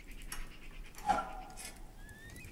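A metal stove door clanks.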